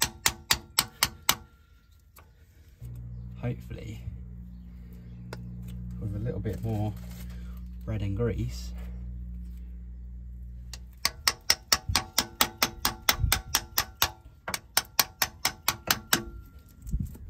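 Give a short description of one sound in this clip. Sharp metallic taps ring out in quick, regular succession as a punch is struck.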